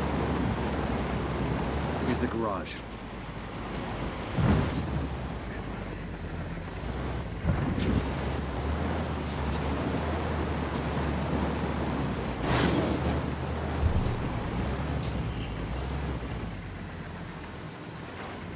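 A truck engine rumbles steadily as the truck drives over rough ground.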